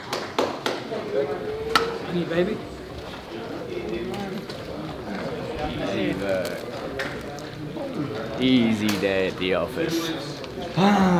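A young man talks and laughs cheerfully, close by.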